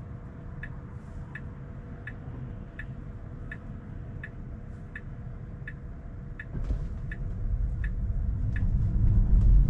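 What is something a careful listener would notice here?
A turn signal ticks steadily inside a quiet car.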